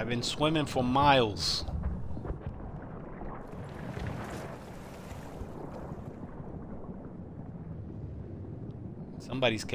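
Water churns and gurgles as a swimmer moves underwater.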